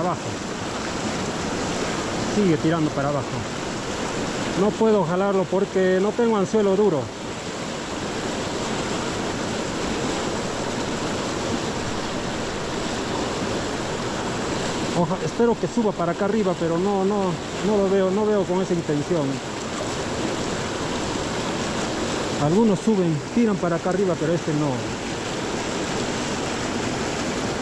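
A fast river rushes and splashes over rocks close by.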